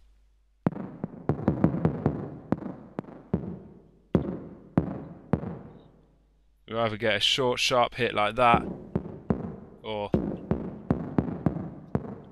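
A synthesizer plays short, plucky electronic notes in a quick rhythm.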